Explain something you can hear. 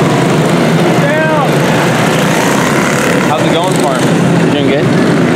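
A kart engine whines past close by, its pitch rising and then dropping.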